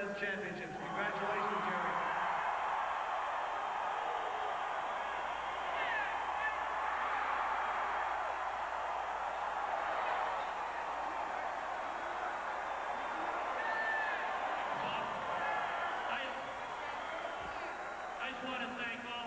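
A crowd cheers loudly in a large echoing arena.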